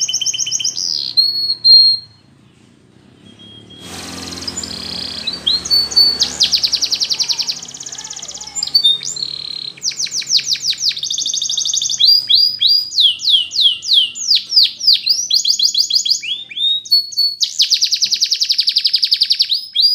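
A canary sings loud, rapid trills and whistles close by.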